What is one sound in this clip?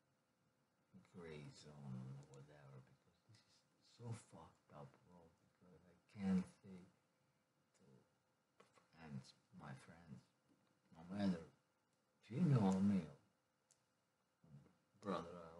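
A middle-aged man talks casually, close up.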